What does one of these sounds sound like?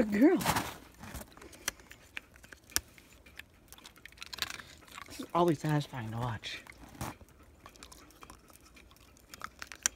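A dog crunches and gnaws on an icicle.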